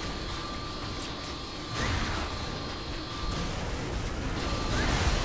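A flamethrower roars steadily.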